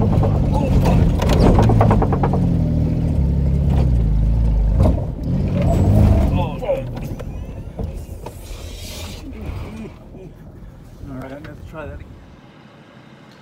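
A car engine and tyres rumble from inside a moving car.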